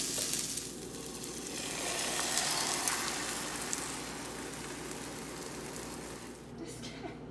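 Beaten eggs sizzle as they pour into a hot pan.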